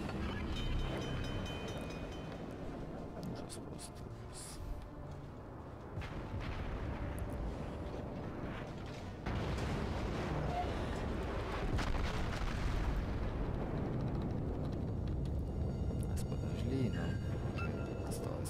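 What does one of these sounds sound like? Heavy naval guns boom in loud blasts.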